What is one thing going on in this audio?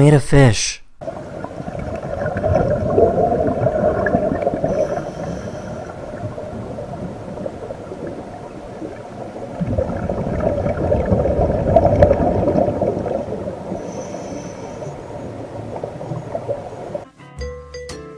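Air bubbles gurgle and rumble steadily underwater as a scuba diver breathes out.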